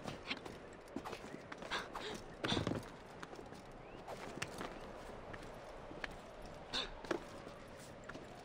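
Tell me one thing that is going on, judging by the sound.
Hands grip and scrape on stone ledges during a climb.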